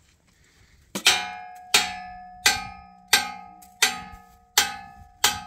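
A hammer strikes a steel frame, which rings.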